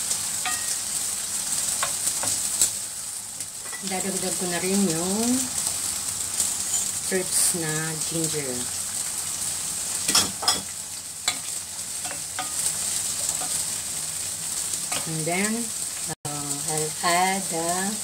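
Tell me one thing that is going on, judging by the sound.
A wooden spoon scrapes and stirs food in a pan.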